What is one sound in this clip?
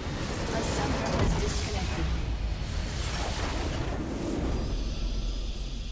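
A bright magical blast booms.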